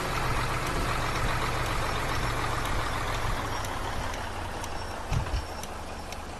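A bus engine hums steadily and winds down as the bus slows.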